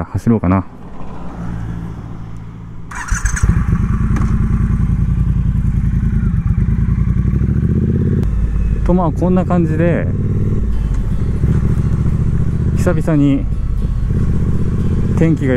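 A motorcycle engine rumbles steadily as the bike rides along.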